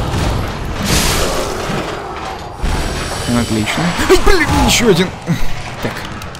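A monster screeches and growls.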